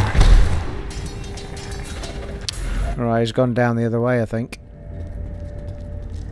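Blows and spell effects crackle in a fight.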